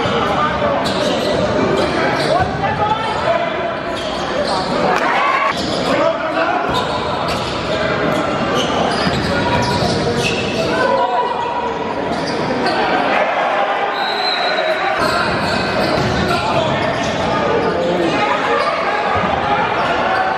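A crowd cheers and chatters loudly in an echoing gym.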